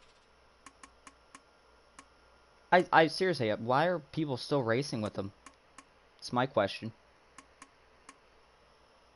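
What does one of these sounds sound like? Soft electronic clicks tick as a menu is browsed.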